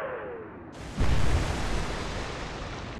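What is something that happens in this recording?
Shells crash into the sea with loud explosive splashes.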